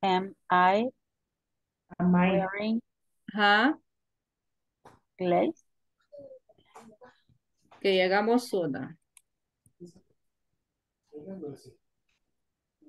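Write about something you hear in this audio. A woman speaks calmly in short phrases through an online call.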